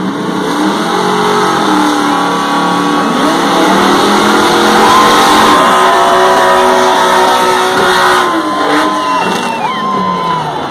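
V8 and inline-six drag cars rev hard during burnouts.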